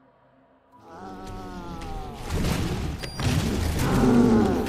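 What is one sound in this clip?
A heavy machine starts up and whirs loudly with a groaning, shifting pitch.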